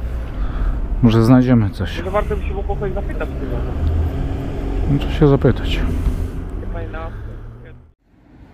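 A young man talks casually close to the microphone.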